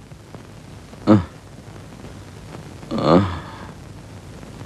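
A man speaks with emotion close by.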